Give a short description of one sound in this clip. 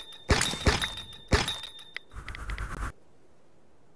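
Sharp game hit sounds thud in quick bursts.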